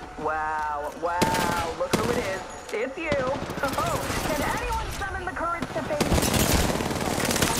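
Rifle shots fire in quick bursts.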